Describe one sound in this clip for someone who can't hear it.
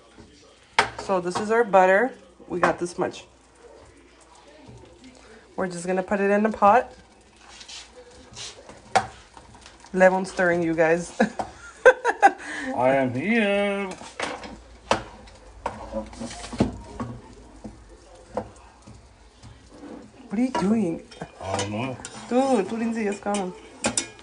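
Butter sizzles in a hot pan.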